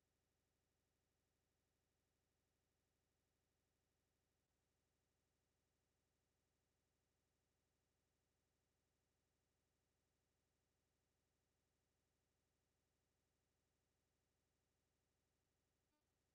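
A clock ticks rapidly and steadily.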